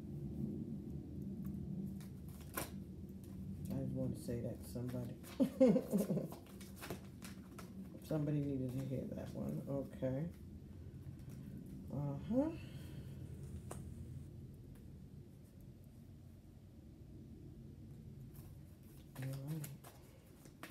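Playing cards shuffle and tap together.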